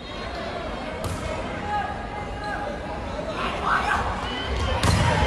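A volleyball is struck hard with a slap.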